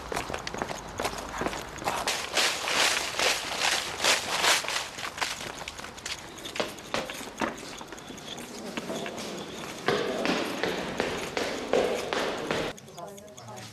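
Footsteps tap on a hard pavement.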